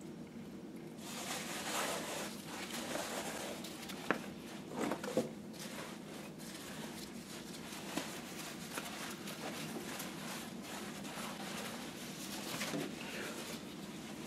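Wet cloth squelches and rustles as it is wrung out.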